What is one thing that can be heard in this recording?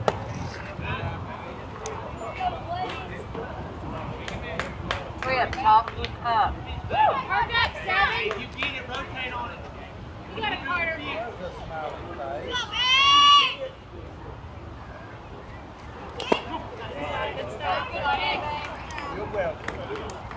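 Young girls shout and cheer nearby outdoors.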